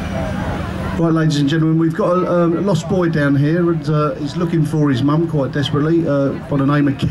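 A man speaks loudly through a loudspeaker.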